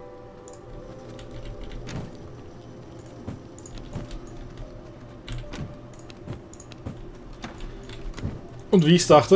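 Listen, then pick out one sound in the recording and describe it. Soft game menu clicks and chimes sound as items are picked and sorted.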